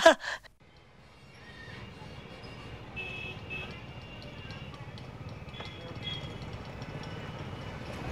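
City traffic hums in the distance.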